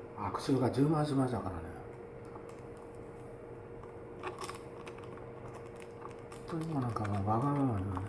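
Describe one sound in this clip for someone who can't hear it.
Paper crinkles and rustles in hands.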